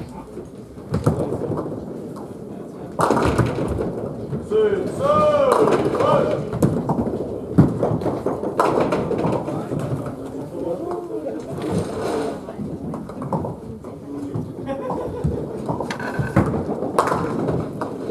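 Pins clatter as bowling balls strike them.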